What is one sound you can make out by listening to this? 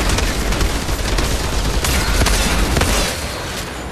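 Bullets strike and explode with loud impacts.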